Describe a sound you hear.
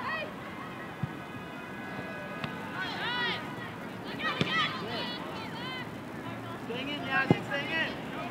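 A soccer ball is kicked with dull thuds.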